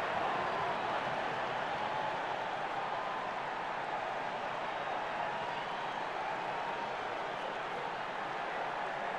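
A large arena crowd murmurs and roars steadily.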